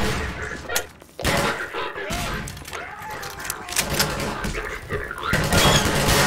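A shotgun is reloaded with metallic clicks.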